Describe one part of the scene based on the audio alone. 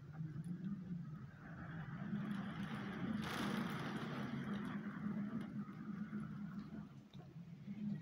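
Wind gusts steadily outside a window.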